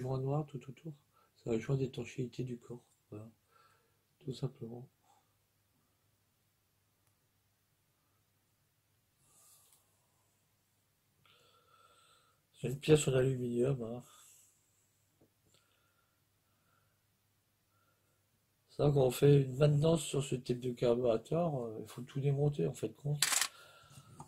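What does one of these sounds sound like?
A middle-aged man talks calmly and close by, in short bursts with pauses.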